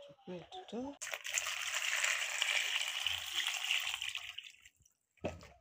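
Water pours from a jug into a bowl.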